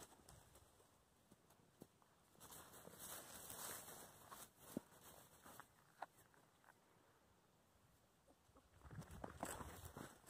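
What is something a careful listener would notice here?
Puppies rustle through dry grass as they play.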